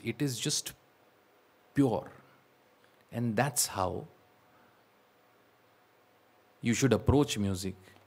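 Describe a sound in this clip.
A man sings expressively into a microphone in short phrases.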